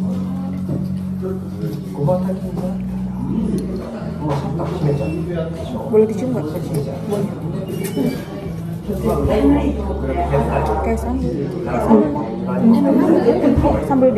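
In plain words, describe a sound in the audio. A metal spoon clinks against a glass jar.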